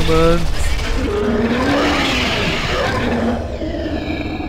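A huge serpent lets out a deep, rasping roar.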